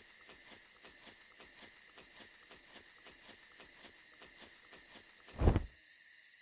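Footsteps crunch quickly through grass.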